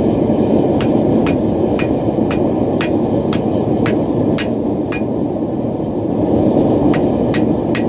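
A hammer rings sharply on an anvil in steady, repeated blows.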